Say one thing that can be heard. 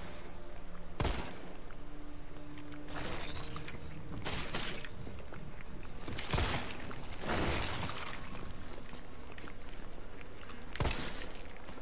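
A pistol fires sharp single shots.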